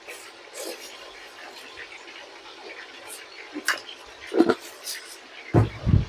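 Green beans are pushed around inside a metal pot.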